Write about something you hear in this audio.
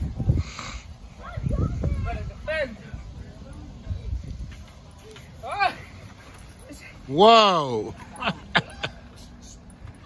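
Children shout and squeal excitedly outdoors.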